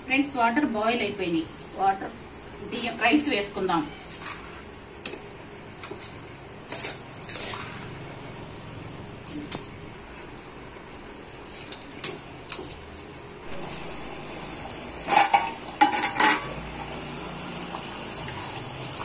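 A metal spoon clinks and scrapes against a metal pot.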